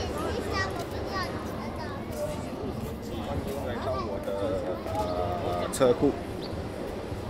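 A young man talks close by, with animation.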